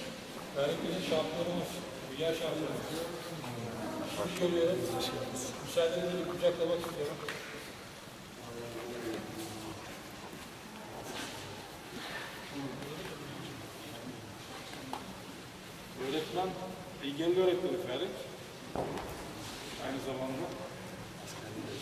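A man speaks with animation in a large echoing hall.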